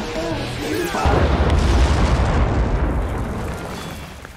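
A loud explosion booms and rumbles, then slowly fades.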